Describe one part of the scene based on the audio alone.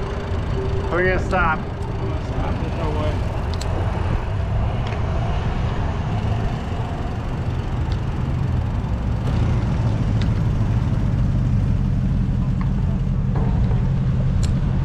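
Wind rushes loudly past a moving bicycle, outdoors.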